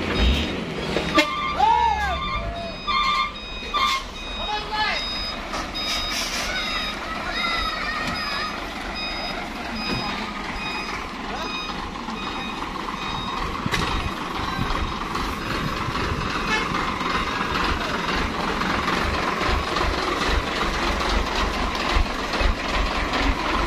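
A truck engine rumbles steadily nearby.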